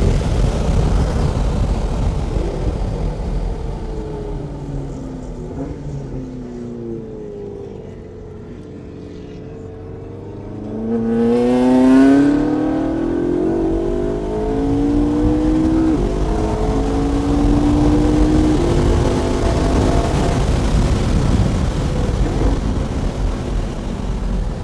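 A car engine drones and revs up and down from inside the car.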